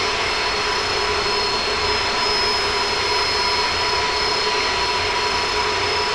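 Jet engines roar steadily as a large airliner flies.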